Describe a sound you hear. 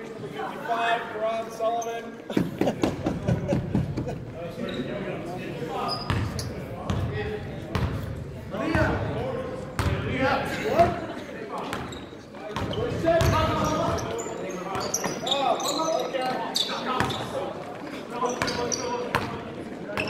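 A basketball bounces on a hardwood court in an echoing gym.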